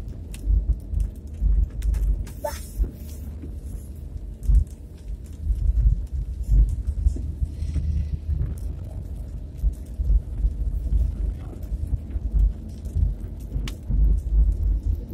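A car engine hums low and steadily while driving.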